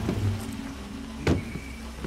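A truck door clicks open.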